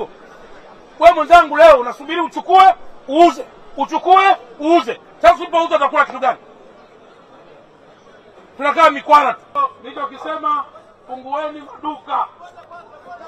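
A man shouts loudly through a megaphone.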